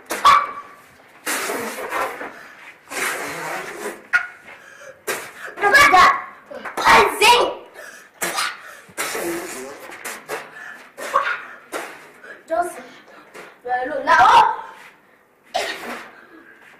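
A boy coughs and chokes loudly, gasping for breath.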